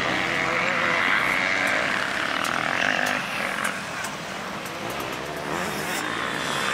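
Motorcycle engines whine and rev in the distance outdoors.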